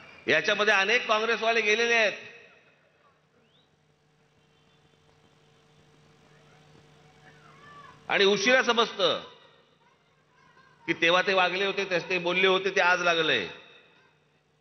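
A middle-aged man speaks forcefully into a microphone over loudspeakers, in bursts with pauses.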